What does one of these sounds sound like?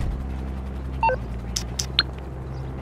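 A phone beeps.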